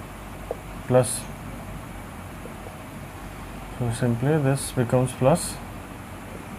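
A man speaks calmly nearby in short phrases.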